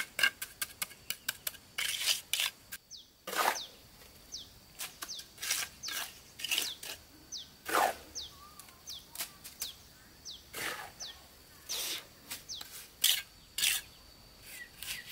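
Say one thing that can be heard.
A trowel taps and scrapes against bricks.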